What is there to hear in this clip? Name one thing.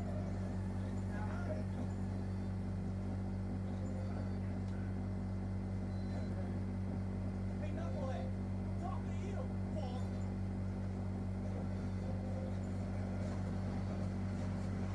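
Video game sounds play from a television.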